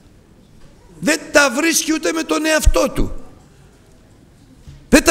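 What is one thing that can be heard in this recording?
An older man preaches loudly and with passion through a microphone.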